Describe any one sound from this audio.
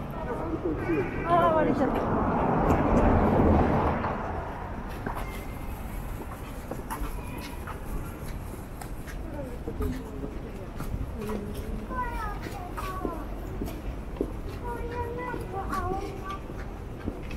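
Adult pedestrians chatter nearby.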